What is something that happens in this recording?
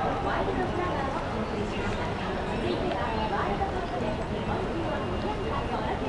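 A dense crowd chatters outdoors.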